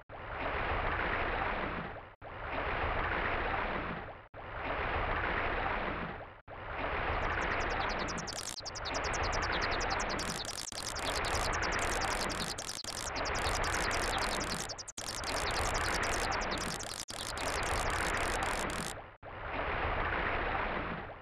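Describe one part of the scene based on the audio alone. Underwater rushing noise swells and fades in repeated waves as a fishing lure sinks.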